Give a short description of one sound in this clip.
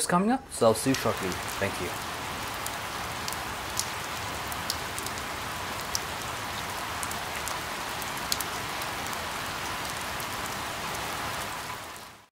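Steady rain patters on leaves.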